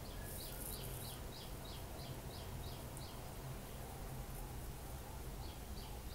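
A metal spoon scrapes against a wok.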